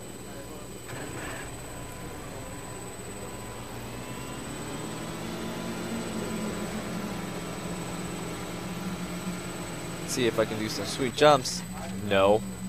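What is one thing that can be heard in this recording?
A quad bike engine hums and revs as it drives.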